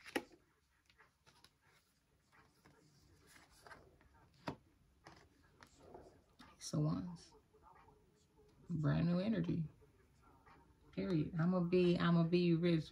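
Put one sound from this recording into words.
Playing cards rustle and slide softly as they are handled and laid down.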